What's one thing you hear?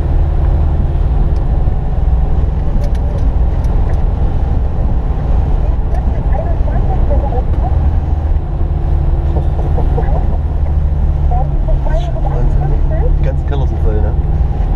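Tyres splash through shallow floodwater on a road.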